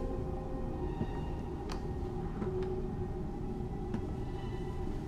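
Slow footsteps tread on a wooden floor.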